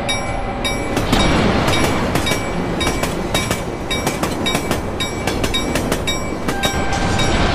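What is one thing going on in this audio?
Metal crashes and scrapes as a train derails.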